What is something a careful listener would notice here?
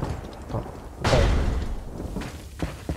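A heavy door creaks and bangs open.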